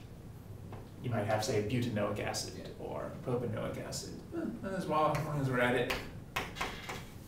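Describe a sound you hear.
A man speaks calmly and clearly nearby, in a lecturing tone.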